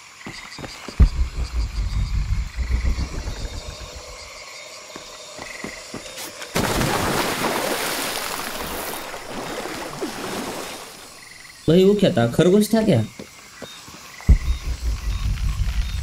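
Footsteps run quickly over soft ground.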